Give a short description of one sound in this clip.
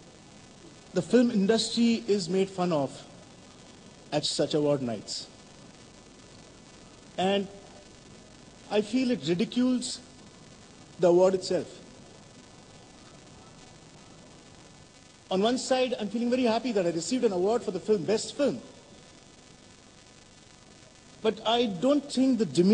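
A middle-aged man speaks calmly into a microphone, with pauses between phrases.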